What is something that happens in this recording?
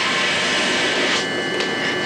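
Steam hisses from a pipe.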